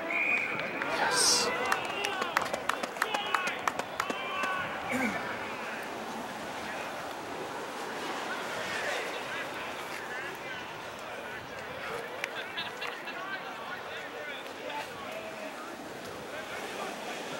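Young men shout and call out to each other outdoors on an open field.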